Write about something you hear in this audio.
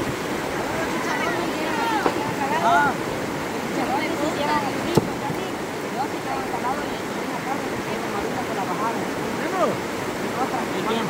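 Men shout and call to one another outdoors.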